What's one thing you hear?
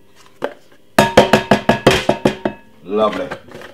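A seasoning shaker rattles as it is shaken over a bowl.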